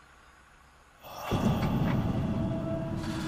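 A truck engine starts and runs loudly.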